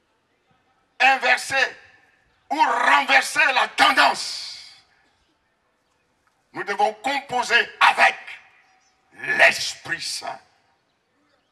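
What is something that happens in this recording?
A man preaches with animation into a microphone over loudspeakers, in bursts with pauses.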